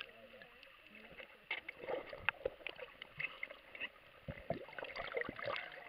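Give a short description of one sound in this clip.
Bubbles gurgle and knock up close underwater.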